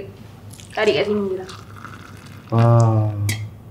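Liquid pours into a cup.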